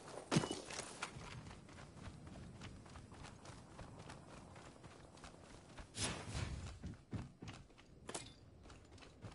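Footsteps patter quickly on the ground.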